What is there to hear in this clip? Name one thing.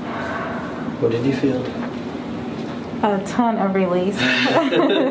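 A woman speaks nearby.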